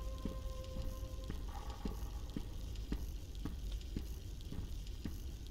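Footsteps thud at a steady running pace on a hard metal floor.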